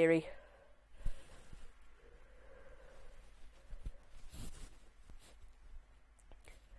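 Fabric rustles softly as a shawl is handled.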